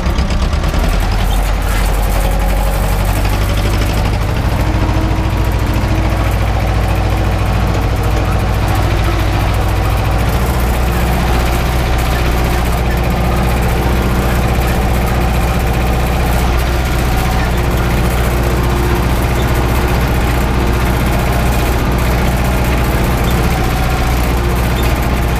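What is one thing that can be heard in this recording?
A cultivator rattles and scrapes through dry soil.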